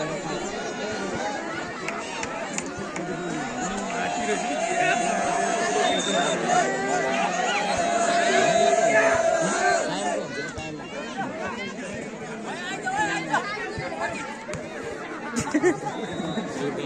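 A large outdoor crowd cheers and shouts, growing louder and then easing off.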